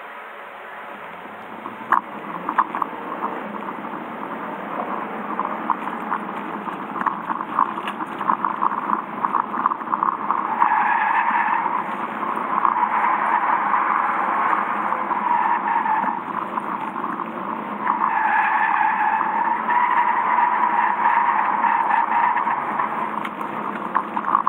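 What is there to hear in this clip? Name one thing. A car engine revs hard and roars from inside the car.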